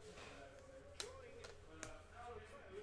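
A card stack taps down onto a table.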